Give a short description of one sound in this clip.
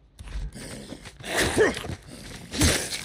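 A creature snarls nearby.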